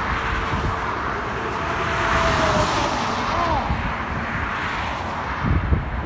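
Traffic rushes past on a highway, outdoors in wind.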